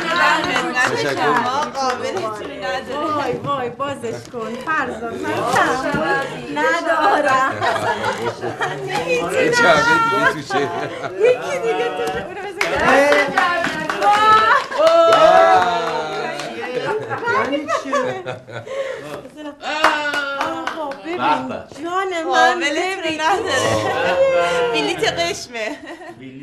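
A man talks cheerfully nearby.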